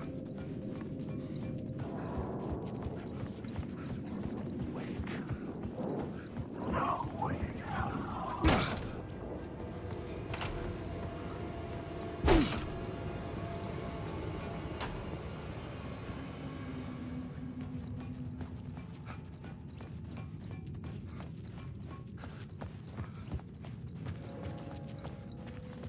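Footsteps crunch on gravel in an echoing tunnel.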